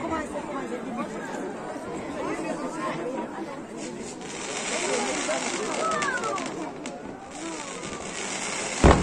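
Fireworks crackle and fizz overhead.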